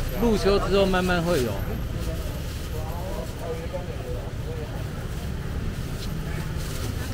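A busy market crowd murmurs in the background.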